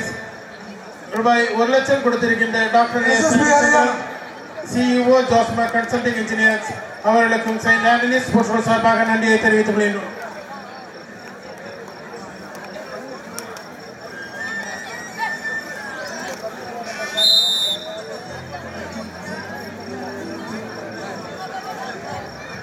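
A crowd murmurs in the background of a large hall.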